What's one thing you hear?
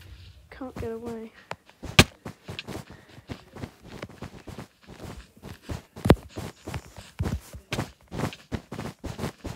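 Wool blocks are placed one after another with soft, quick thuds.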